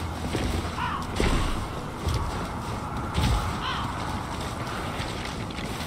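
Footsteps thud on grass and gravel as two figures run.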